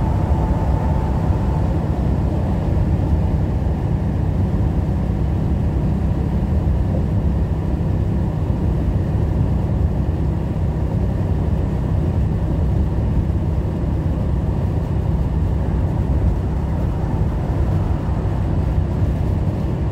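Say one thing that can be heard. Tyres roar steadily on a wet highway.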